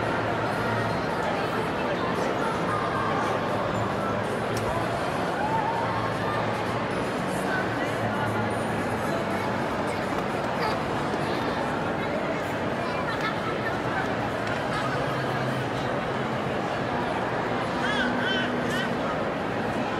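A crowd of people chatters in a large indoor hall.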